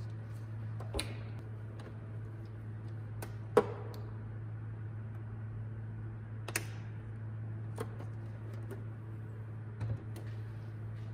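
A toy truck's plastic body clicks and knocks on a hard surface.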